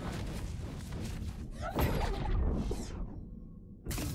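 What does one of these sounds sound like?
A magic spell whooshes and crackles.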